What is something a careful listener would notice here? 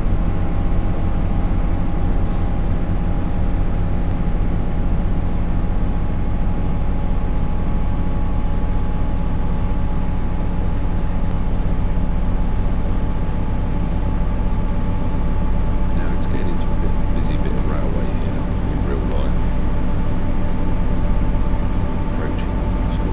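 An electric train's motors hum steadily as it speeds up.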